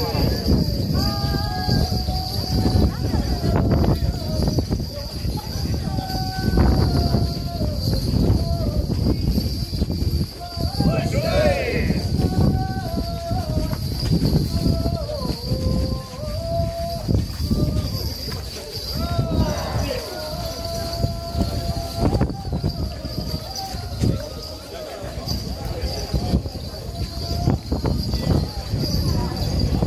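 Many feet shuffle and tramp on pavement.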